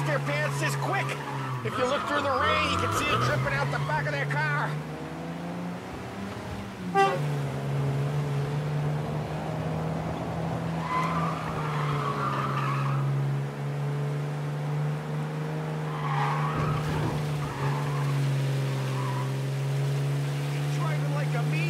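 An old car engine hums steadily as the car drives.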